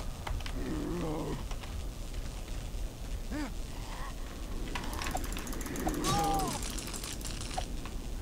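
Sharp hits land in a scuffle, one after another.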